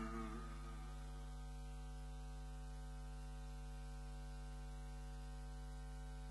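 An elderly man chants in a long, drawn-out voice through a microphone.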